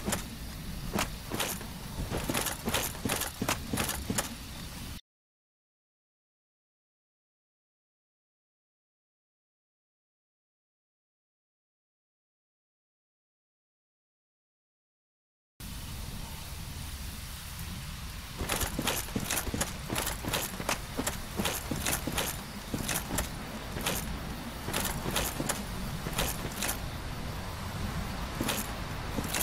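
Heavy armoured footsteps crunch and clank over forest ground.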